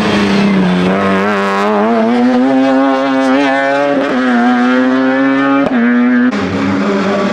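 A racing car engine roars and revs hard as the car speeds past.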